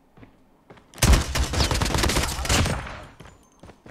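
A game gun fires a rapid, loud burst.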